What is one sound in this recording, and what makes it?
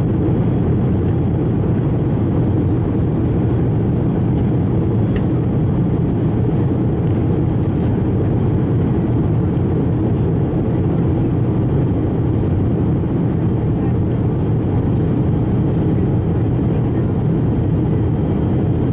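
Jet engines roar steadily in an airplane cabin in flight.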